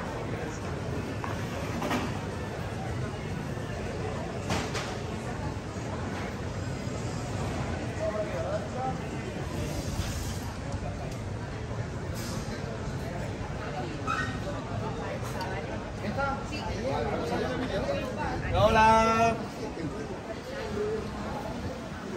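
A crowd of diners chatters outdoors.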